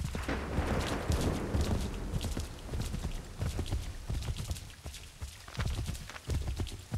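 Horse hooves thud rapidly at a gallop.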